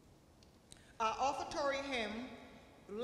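A woman speaks loudly through a microphone in an echoing hall.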